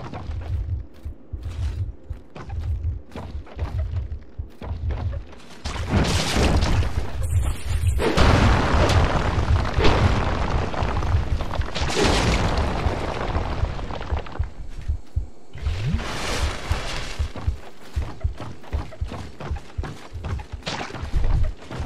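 Heavy footsteps thud steadily on wooden planks.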